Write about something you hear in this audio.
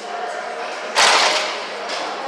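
Iron weight plates clank on a gym machine.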